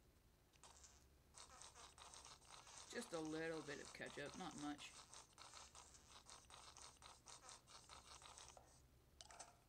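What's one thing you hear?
A sauce bottle squirts and splatters into a glass.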